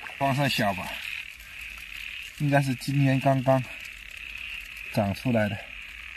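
A stick splashes lightly in shallow water.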